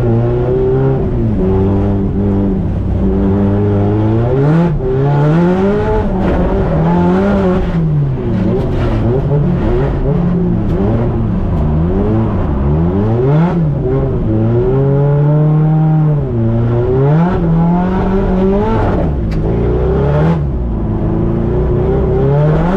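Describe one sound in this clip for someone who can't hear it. A turbocharged four-cylinder drift car revs hard and bounces off the limiter, heard from inside the cabin.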